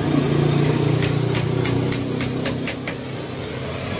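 A hammer taps lightly on wood in a quick, even rhythm.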